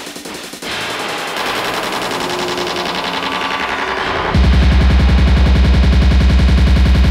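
Electronic dance music plays loudly from a DJ mixer, building up and then dropping into a heavy, pounding bass beat.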